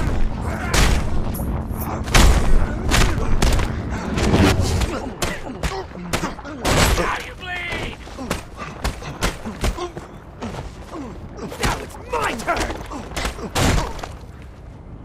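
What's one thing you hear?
Punches land with heavy thuds in a brawl.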